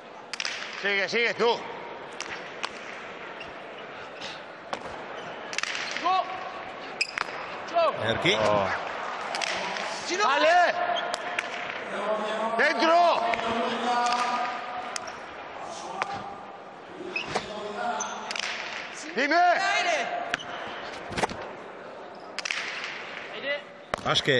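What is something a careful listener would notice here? A ball smacks hard against a wall and echoes through a large hall.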